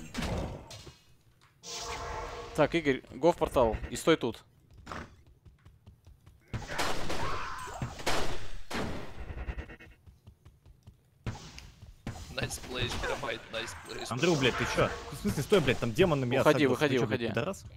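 Magic spells burst and whoosh in short blasts.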